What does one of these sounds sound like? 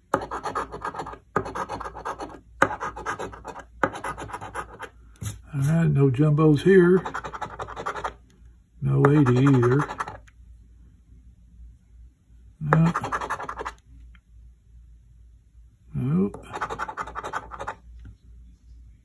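A coin scratches rapidly across a card, in short rasping bursts.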